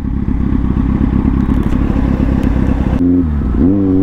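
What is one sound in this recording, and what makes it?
A nearby motorcycle engine rumbles roughly at idle.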